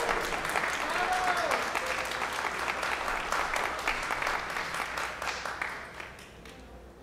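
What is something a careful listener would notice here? A crowd applauds in a large echoing hall, then the clapping fades away.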